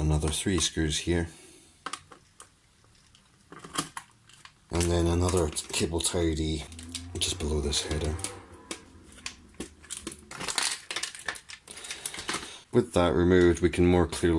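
Plastic parts and wires click and rustle as they are handled.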